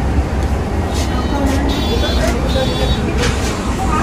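A card reader beeps as a card is tapped.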